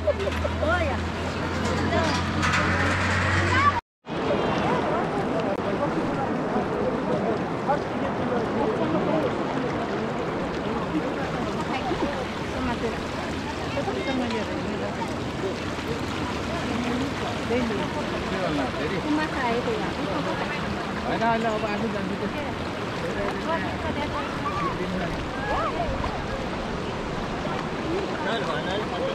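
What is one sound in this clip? A river rushes and splashes over stones.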